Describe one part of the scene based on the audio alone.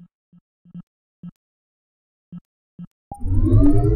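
Soft menu clicks sound as buttons are pressed.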